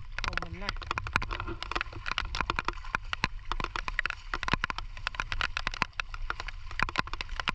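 Many small clicks and pops crackle from the wet mud.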